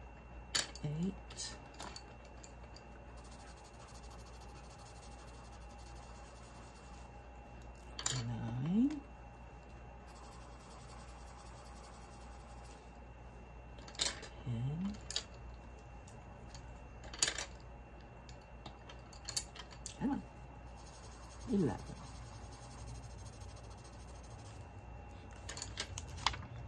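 Pencils clatter and rattle as they are picked from a pile.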